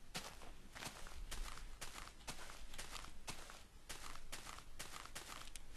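Footsteps rustle steadily through grass at a walking pace.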